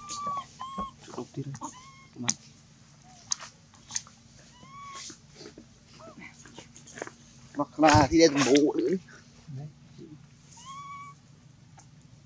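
A baby monkey squeaks with short, high, whining cries.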